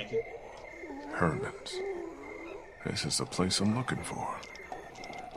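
A man speaks quietly to himself, up close.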